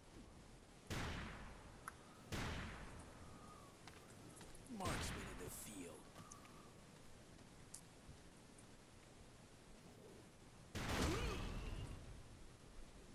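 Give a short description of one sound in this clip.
Loud explosions boom and rumble several times.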